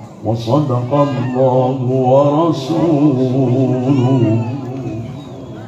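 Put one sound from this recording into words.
An elderly man chants melodically through a microphone.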